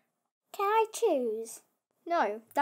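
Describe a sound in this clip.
A young girl asks a short question close by.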